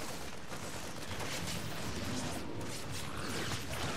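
Laser shots and small blasts crackle in a skirmish.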